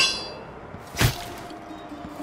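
A blade strikes a body with a sharp, heavy hit.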